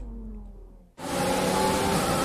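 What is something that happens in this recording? Heavy rain hisses steadily.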